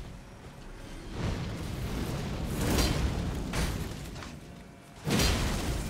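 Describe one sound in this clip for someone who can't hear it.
A heavy magical blast whooshes and crashes.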